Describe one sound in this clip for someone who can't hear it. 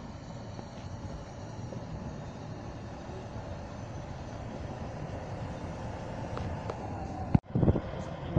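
A diesel locomotive rumbles steadily as it pulls a train slowly past.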